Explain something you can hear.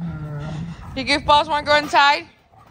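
A German shepherd barks in high, sharp yelps.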